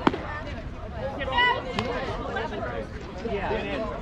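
A ball smacks into a catcher's mitt.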